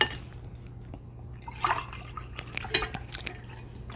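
Water pours into a glass.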